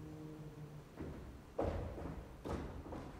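Heavy footsteps thud on a wooden stage floor.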